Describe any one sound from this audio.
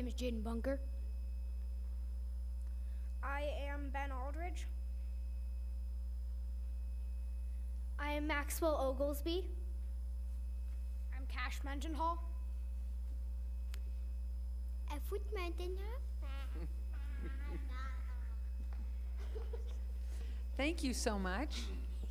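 Young children speak into a microphone one after another, in short bursts.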